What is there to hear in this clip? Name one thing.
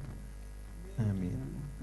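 A man sings into a microphone, amplified through loudspeakers.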